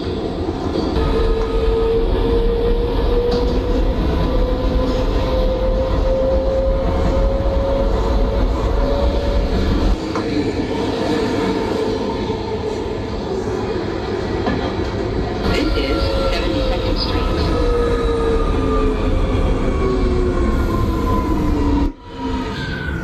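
A subway train's electric motor whines, rising and then falling in pitch.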